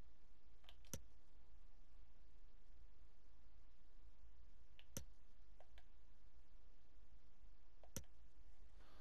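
A short electronic click sounds as a menu changes.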